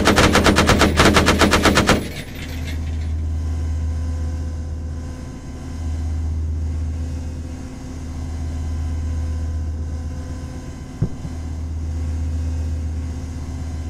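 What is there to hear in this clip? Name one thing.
A large fire roars and crackles.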